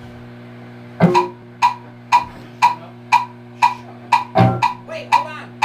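A drummer strikes a drum and cymbal in a steady beat.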